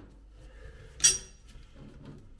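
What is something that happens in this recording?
A metal tool knocks sharply against a pipe.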